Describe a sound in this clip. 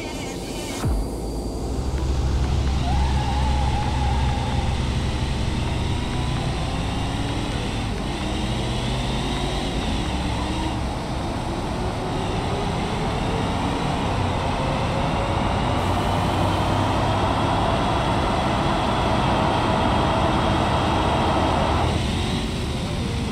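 A car engine revs hard and roars as it speeds up.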